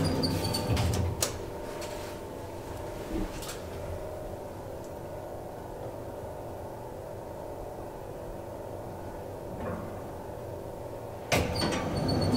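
An elevator car hums as it travels.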